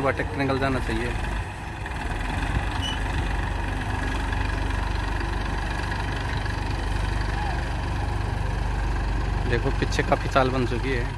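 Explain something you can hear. Men talk outdoors near a running tractor.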